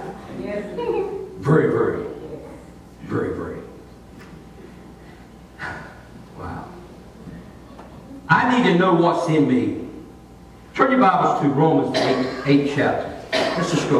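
An elderly man speaks calmly through a microphone in an echoing hall, with pauses.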